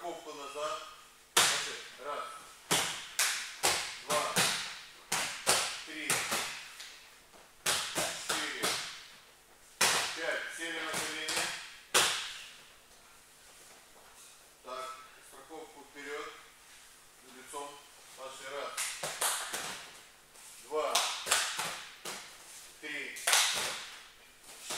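A man gives instructions in a large echoing hall.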